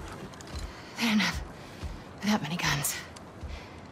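A young woman speaks quietly and tensely nearby.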